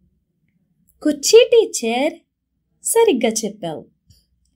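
A woman speaks clearly and with animation, close to a microphone.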